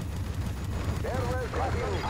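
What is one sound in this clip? Cannon fire rattles in rapid bursts.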